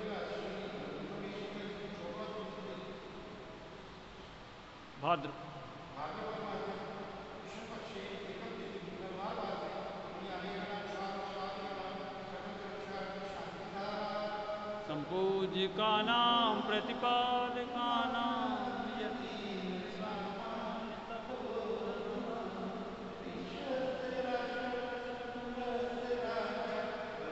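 A woman chants in a steady, melodic voice nearby.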